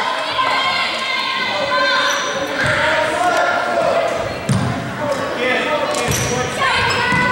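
Young girls shout and call out across an echoing gym.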